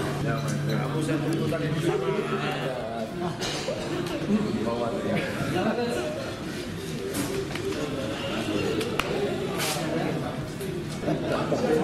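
Men greet each other warmly and laugh.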